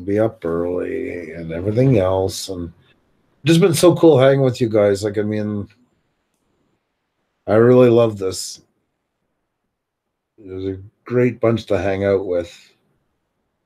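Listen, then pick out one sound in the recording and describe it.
A middle-aged man speaks casually over an online call.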